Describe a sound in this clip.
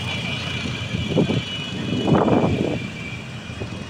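Engines rev loudly as quad bikes ride in a procession.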